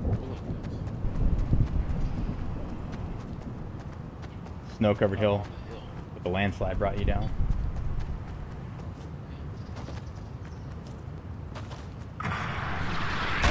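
Footsteps run over grass.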